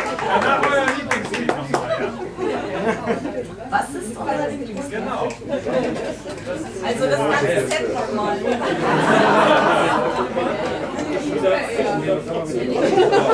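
A keyboard plays chords.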